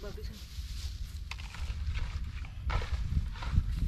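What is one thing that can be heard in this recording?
Dry straw rustles and crunches underfoot.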